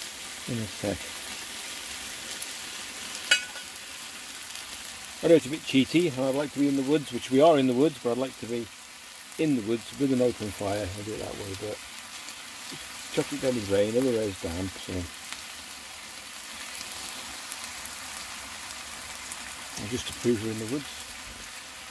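Meat sizzles gently in a frying pan.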